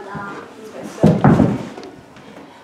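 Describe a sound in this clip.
A girl falls onto the floor with a heavy thud.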